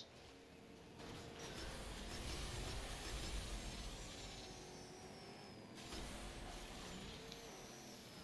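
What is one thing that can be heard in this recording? A racing car engine roars steadily.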